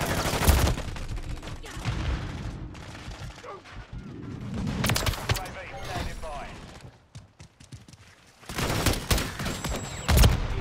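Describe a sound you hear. Gunfire cracks out in sharp bursts.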